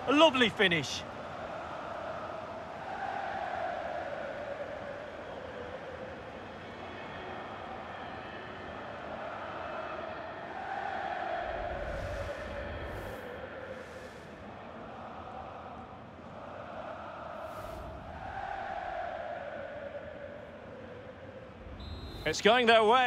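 A large stadium crowd cheers and chants loudly.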